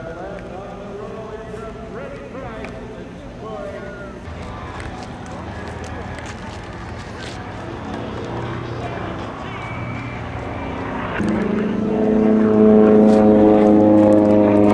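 A jet engine hums and whines nearby, growing louder toward the end.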